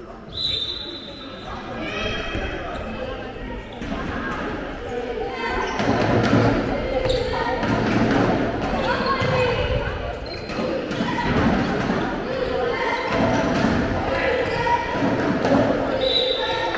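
A ball bounces on the floor with echoing thuds.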